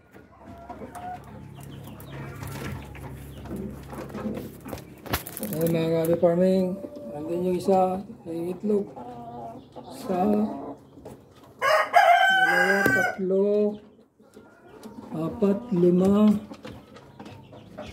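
Hens cluck close by.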